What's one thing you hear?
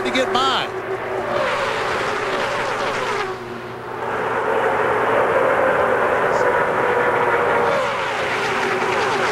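Race car engines roar loudly as a pack of cars speeds past.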